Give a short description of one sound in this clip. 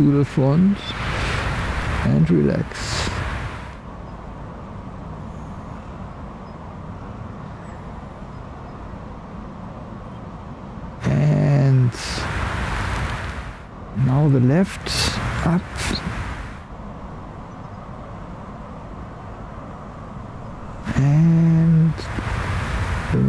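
A man speaks loudly outdoors in short bursts.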